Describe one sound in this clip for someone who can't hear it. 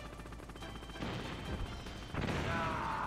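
A missile launches with a whoosh.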